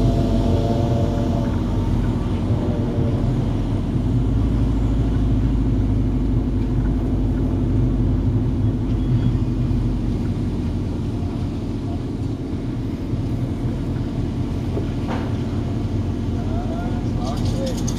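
A car engine hums steadily from inside the cabin as the car rolls slowly along.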